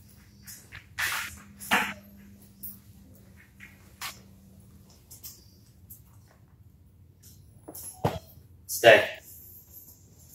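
A man speaks short, firm commands to a dog nearby.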